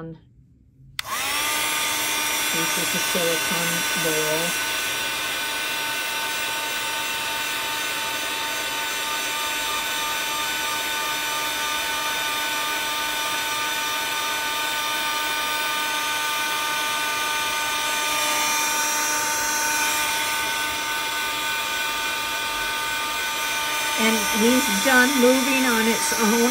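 A small heat gun whirs with a steady high-pitched hum.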